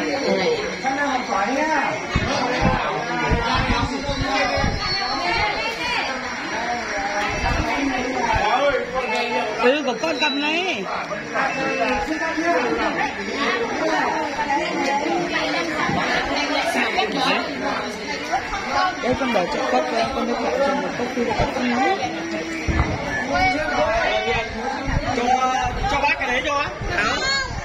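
A crowd of adults and children chatter and talk all around.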